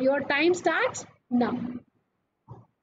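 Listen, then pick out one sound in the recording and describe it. A woman speaks briefly and calmly through a microphone.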